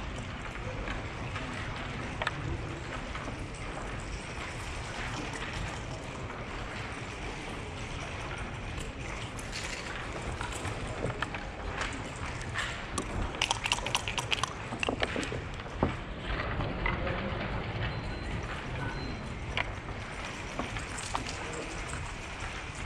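Backgammon checkers click as they are moved on a wooden board.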